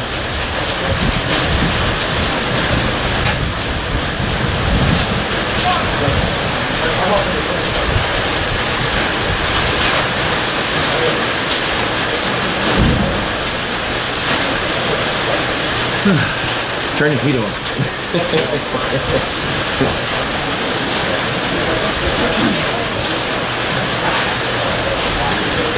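A man talks to a group outdoors, heard from a distance.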